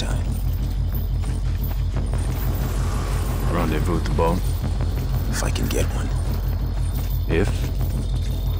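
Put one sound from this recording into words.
Footsteps tread steadily on a metal grating.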